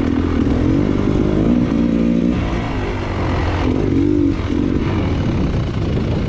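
A dirt bike engine revs and varies in pitch close by.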